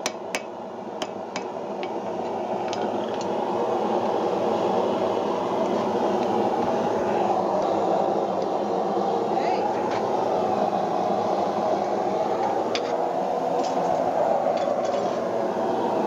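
Metal tongs clink and tap against an anvil.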